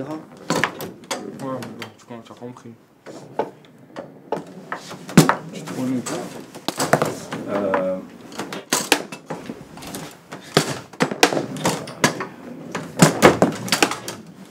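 A table football ball clacks against the players and rods.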